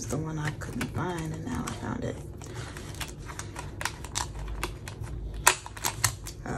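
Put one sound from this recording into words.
Metal binder rings snap open and shut.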